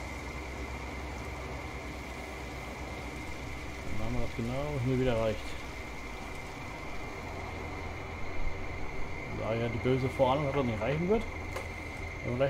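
A farm machine's engine hums low and steadily.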